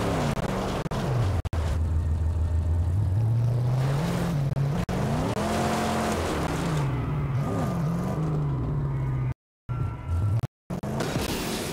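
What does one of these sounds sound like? Tyres crunch over rough gravel.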